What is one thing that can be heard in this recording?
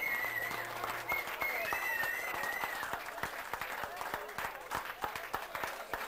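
A crowd applauds with quick, scattered clapping.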